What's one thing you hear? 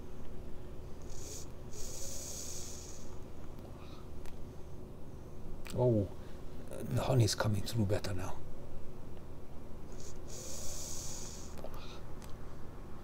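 A vape device crackles softly as a man draws on it.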